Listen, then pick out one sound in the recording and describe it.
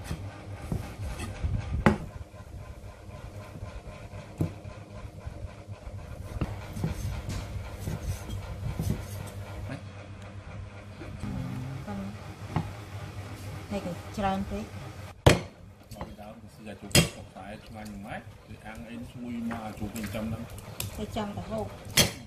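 A cleaver chops on a wooden board with sharp knocks.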